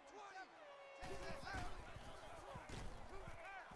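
A stadium crowd roars.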